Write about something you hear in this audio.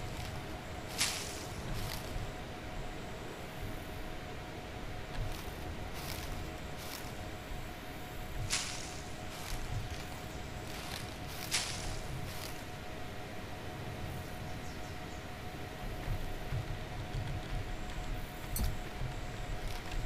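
Leaves rustle and snap as plants are pulled by hand.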